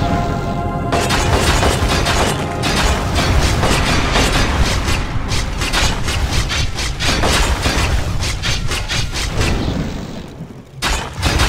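Weapons strike in quick, repeated hits.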